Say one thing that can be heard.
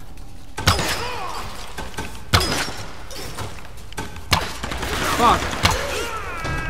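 A bowstring snaps as arrows are loosed in sharp, quick shots.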